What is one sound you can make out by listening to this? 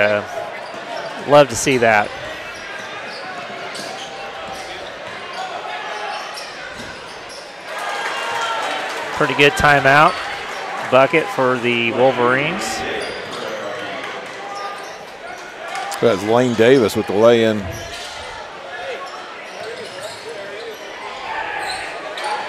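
A crowd murmurs and cheers in a large echoing gym.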